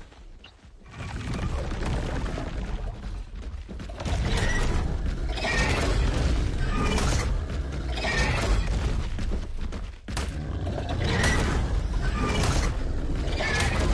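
A large creature stomps heavily across the ground.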